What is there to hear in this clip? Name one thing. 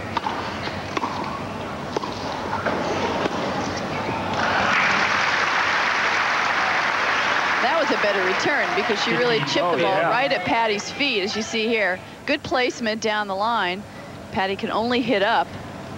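A tennis ball is struck with a racket.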